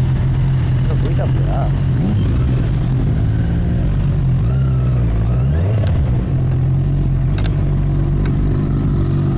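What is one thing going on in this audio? A motorcycle engine idles close by with a steady low rumble.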